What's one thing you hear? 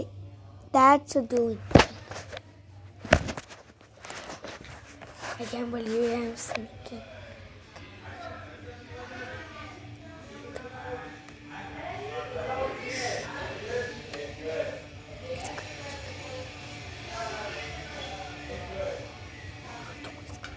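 A young boy talks and squeals playfully close to a phone's microphone.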